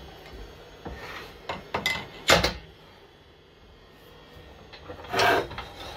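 Metal parts clink and knock against each other.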